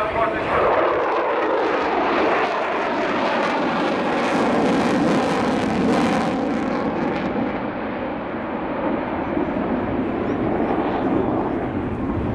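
A jet engine roars loudly overhead with a crackling rumble, slowly fading as it pulls away.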